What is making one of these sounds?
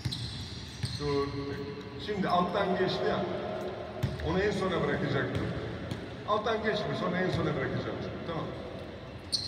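A man calls out loudly to players in a large echoing hall.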